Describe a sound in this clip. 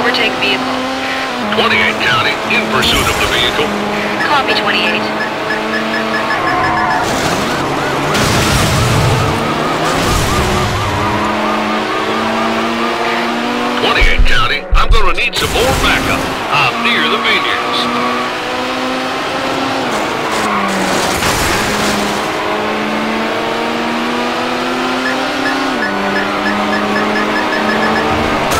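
A sports car engine roars steadily, its pitch rising and falling with the gear changes.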